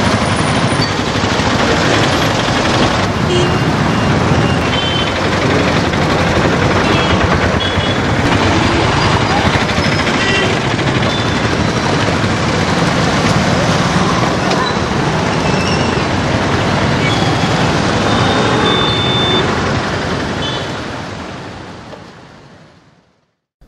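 Motorbike and auto-rickshaw engines putter past close by.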